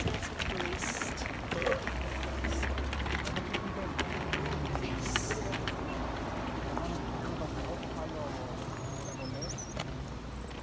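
Traffic rumbles along a nearby road.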